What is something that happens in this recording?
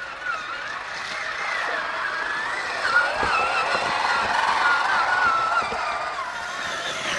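Water splashes as small tyres churn through a shallow stream.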